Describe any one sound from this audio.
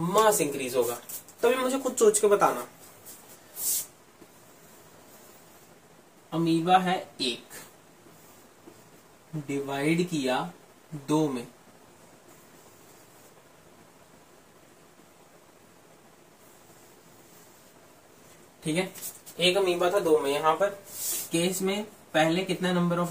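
A young man speaks calmly and explains things close to a microphone.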